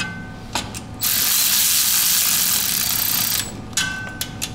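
A power tool whirs loudly.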